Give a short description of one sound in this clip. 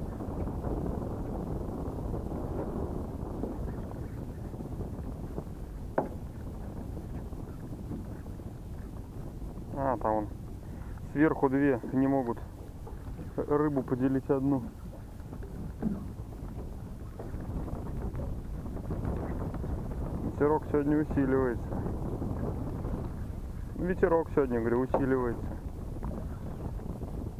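Wind rumbles across open water.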